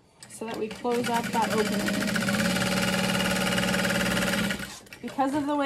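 A sewing machine runs with a fast, steady whirr.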